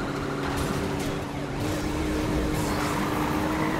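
Metal scrapes and grinds as cars collide.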